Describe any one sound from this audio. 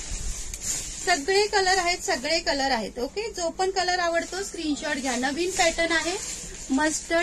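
A middle-aged woman speaks with animation close to the microphone.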